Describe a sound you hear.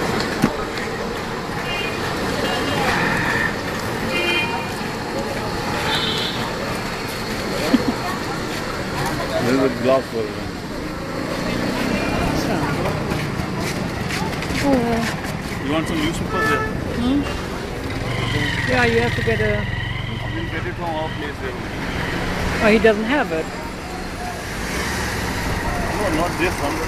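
Street traffic and crowd noise fill the air outdoors.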